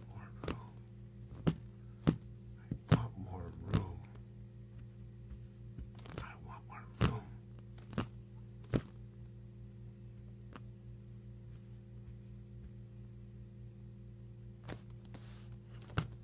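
A cat's paws tap and brush against a hand, close by.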